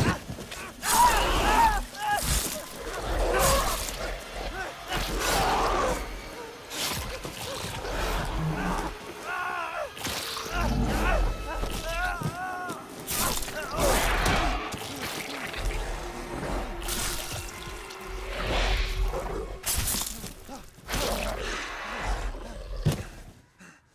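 Heavy blows and thuds land in a fight.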